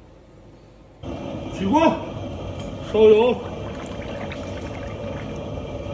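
Oil pours and splashes into a metal wok.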